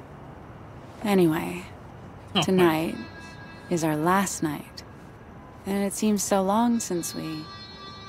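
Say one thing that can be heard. A woman speaks softly and warmly, close by.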